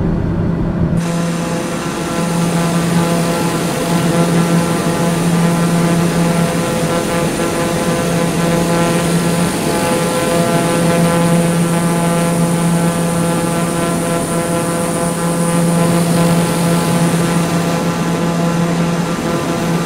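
A propeller engine hums with a steady high whine, heard from outside.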